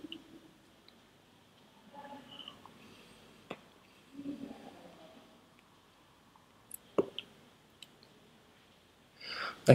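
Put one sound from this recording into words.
A man exhales a puff of vapour with a soft breath.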